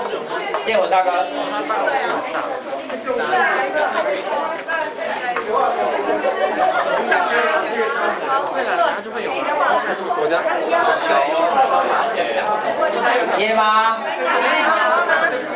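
A young man speaks through a microphone over a loudspeaker in an echoing room.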